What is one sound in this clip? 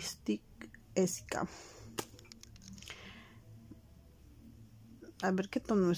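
A plastic lipstick cap clicks as it is pulled off and pushed back on.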